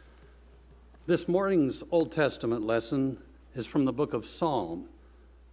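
A middle-aged man reads out calmly through a microphone.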